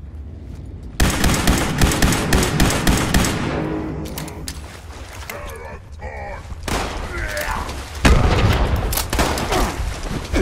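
Gunfire blasts loudly in rapid bursts.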